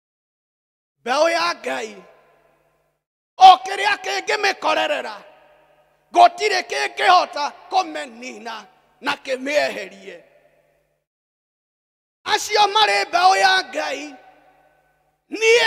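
A middle-aged man preaches with animation into a microphone, in bursts with pauses.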